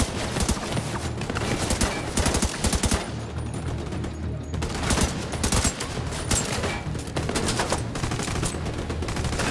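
Rapid gunshots crack in short bursts.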